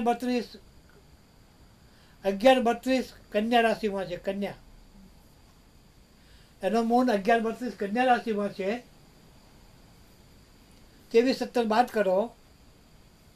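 An elderly man speaks slowly and calmly close by, pausing between phrases.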